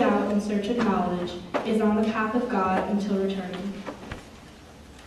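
A young woman reads out calmly through a microphone in an echoing hall.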